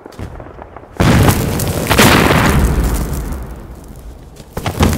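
An explosion roars with a heavy blast.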